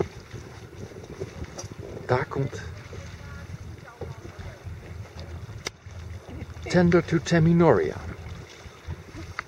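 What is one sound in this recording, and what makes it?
A paddle splashes softly in calm water.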